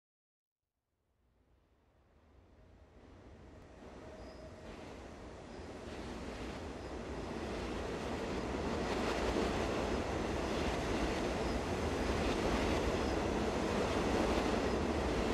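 Heavy rain pours steadily outdoors, growing louder.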